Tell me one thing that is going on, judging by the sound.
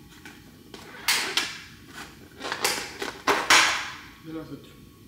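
A plastic food container crackles and snaps open.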